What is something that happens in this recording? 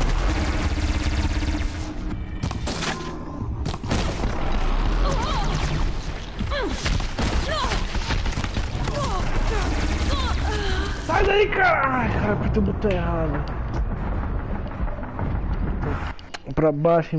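Weapons fire and energy blasts boom and crackle in a fight.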